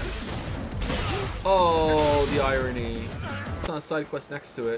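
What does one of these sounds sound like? Blows land with heavy thuds and crashes.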